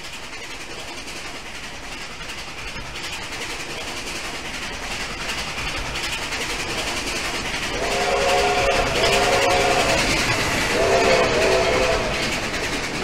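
A steam locomotive chugs closer and passes by loudly.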